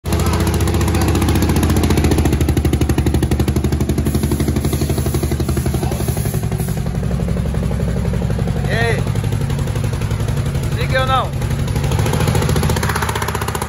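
A motorcycle engine idles with a rapid, steady throb close by.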